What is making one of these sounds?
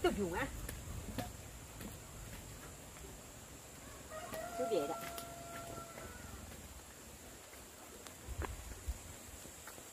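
A woman's footsteps crunch on dirt ground.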